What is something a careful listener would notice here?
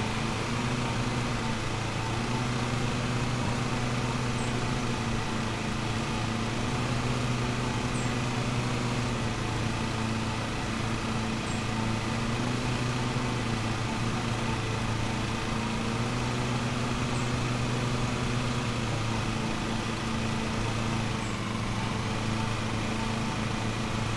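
A riding lawn mower engine hums steadily.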